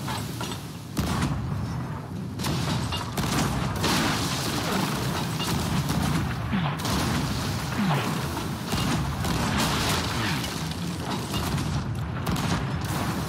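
Cannons boom with heavy blasts.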